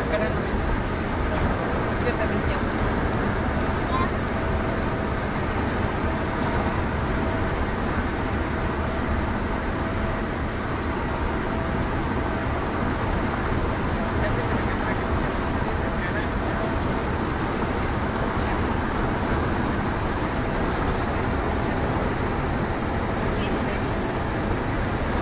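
A car's engine and tyres roar from inside the cabin at highway speed.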